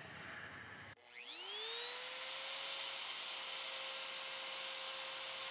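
An electric router whines loudly as it spins up and runs steadily.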